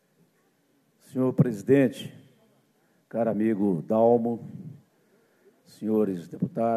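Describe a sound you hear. A middle-aged man speaks formally into a microphone, heard through a loudspeaker in a large hall.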